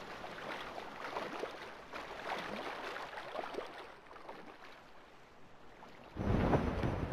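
Water splashes softly.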